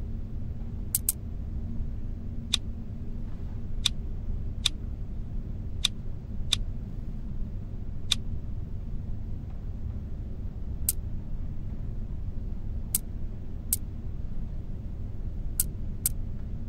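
Game interface clicks sound sharply as stones are moved.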